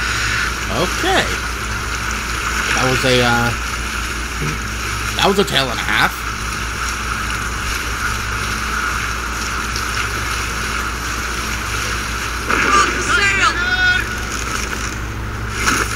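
Water rushes past a wooden boat's hull.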